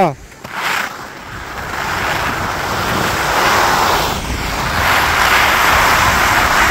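Skis or a snowboard scrape and hiss steadily over hard snow.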